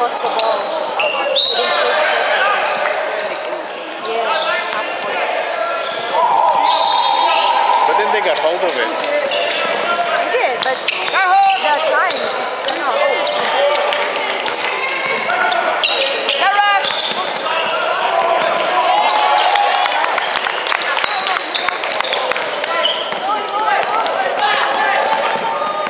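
Young men shout and call out to each other across the court.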